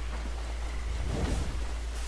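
Footsteps rustle through grass.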